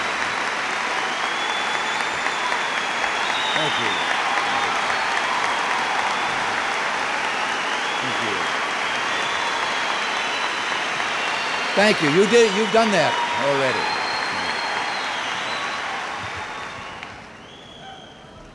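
A large crowd applauds loudly in a big hall.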